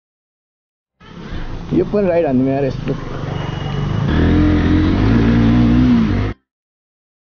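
A motorcycle engine idles and revs up close.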